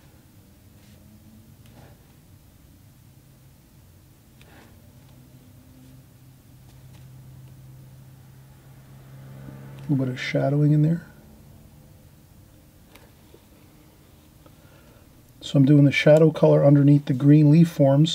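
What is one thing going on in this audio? A paintbrush taps and brushes softly on paper.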